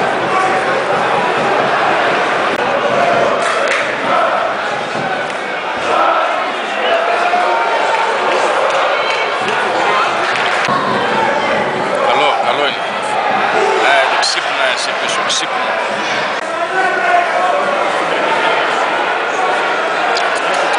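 Men shout to each other across an open sports ground.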